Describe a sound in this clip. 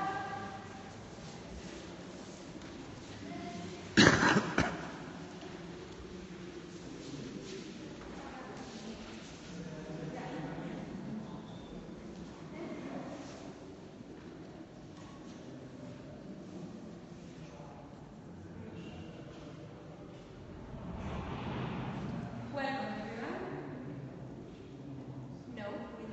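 Several adults murmur and talk quietly in a large echoing hall.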